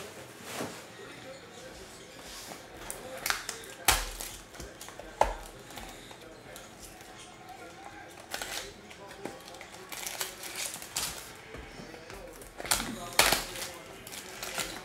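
Plastic wrapping crinkles and rustles as hands tear it open.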